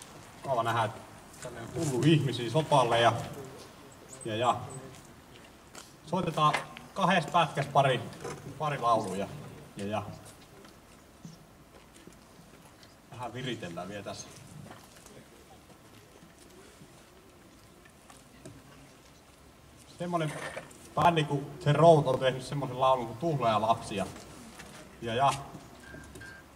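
A middle-aged man speaks into a microphone over a loudspeaker, outdoors.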